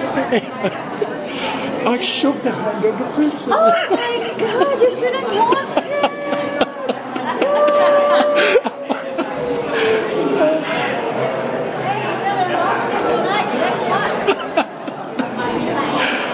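A crowd of people chatter all around in a busy room.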